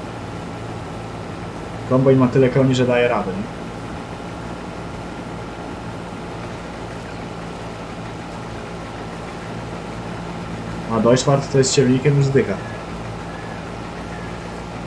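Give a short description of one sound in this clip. A harvester engine hums steadily.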